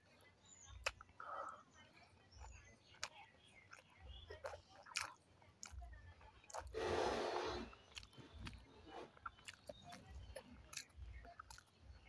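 A woman slurps and bites into soft, syrupy food close up.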